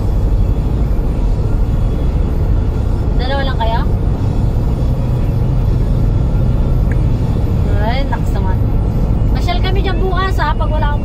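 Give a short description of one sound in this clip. A car drives along a road with a steady low rumble of tyres and engine.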